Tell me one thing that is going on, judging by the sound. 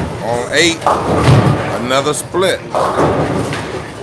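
Bowling pins crash and clatter.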